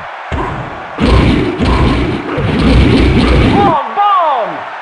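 Football players collide with heavy thuds and crashes.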